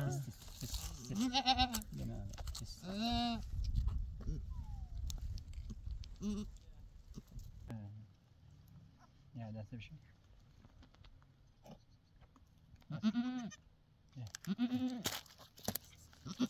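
A goat bleats loudly nearby.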